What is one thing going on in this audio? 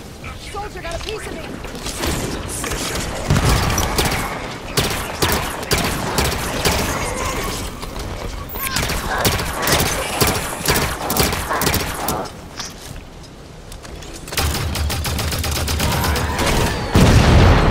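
Rapid gunfire blasts and bursts.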